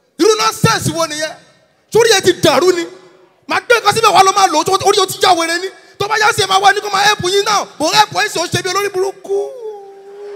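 A young man speaks with animation into a microphone over loudspeakers.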